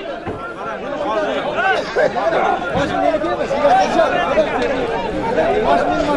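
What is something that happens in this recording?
A crowd of men shouts and calls out loudly outdoors.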